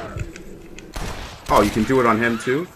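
A gun fires a sharp shot close by.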